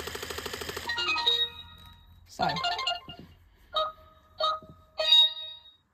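A robot toy dog gives short electronic chirps and beeps.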